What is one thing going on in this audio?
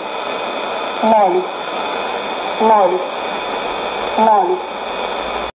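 A radio hisses with steady shortwave static.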